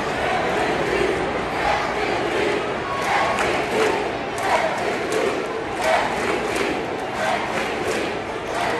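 A crowd chants loudly in rhythm, growing louder.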